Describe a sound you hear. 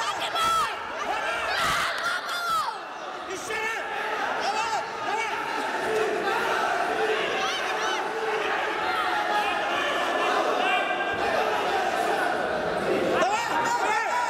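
A crowd of men shouts and calls out loudly in a large echoing hall.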